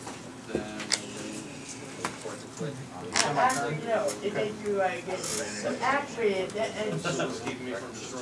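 Playing cards are laid down softly on a table.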